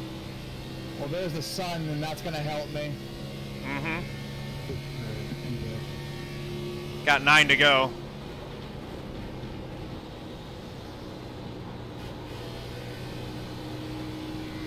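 A race car engine drones steadily.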